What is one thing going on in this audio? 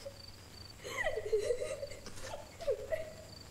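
A woman sobs.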